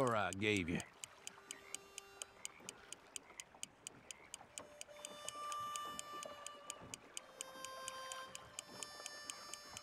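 A fishing reel clicks steadily as its line is wound in.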